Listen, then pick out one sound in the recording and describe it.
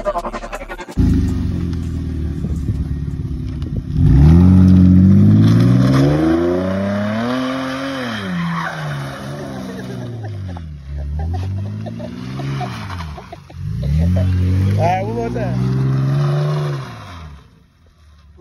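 A car engine idles, then revs loudly up and down.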